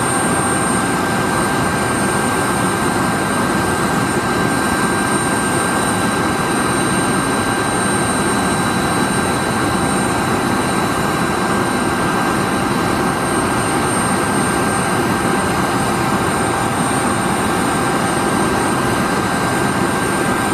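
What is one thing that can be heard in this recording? A parked jet airliner whines steadily.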